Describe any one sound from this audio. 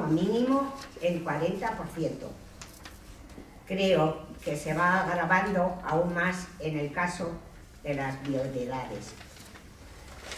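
An elderly woman reads out calmly into a microphone.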